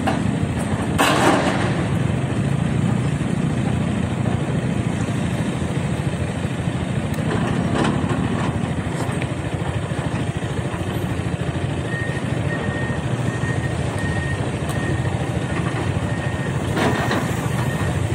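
Excavator buckets scrape and thud against mud and stones.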